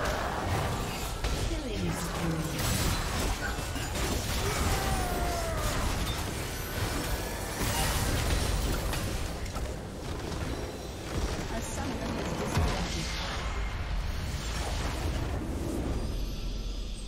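Spell effects crash, whoosh and explode in a busy game battle.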